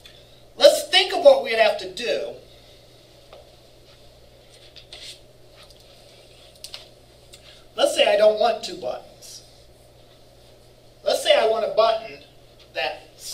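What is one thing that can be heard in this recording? A man speaks in a lecturing tone in short bursts.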